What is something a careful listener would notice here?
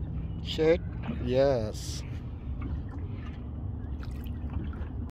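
Water laps gently against a boat's hull.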